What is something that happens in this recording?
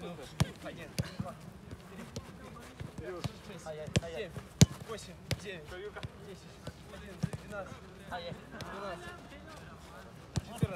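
A football is kicked with sharp thuds, again and again.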